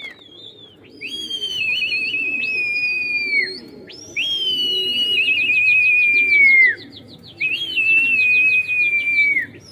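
A young man whistles loudly through his fingers in long, falling blasts.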